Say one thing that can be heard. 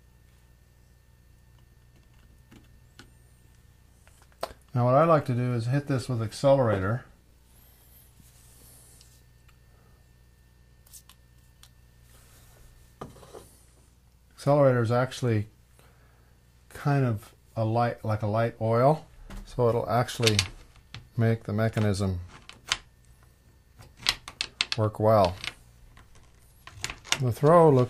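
A small metal catch clicks and rattles.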